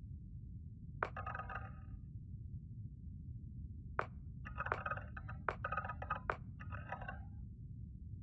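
A game menu clicks with a short chime each time a selection changes.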